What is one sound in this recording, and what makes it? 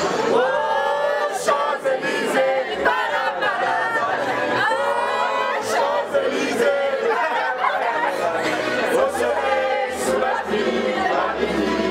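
A group of young men and women sings loudly together nearby.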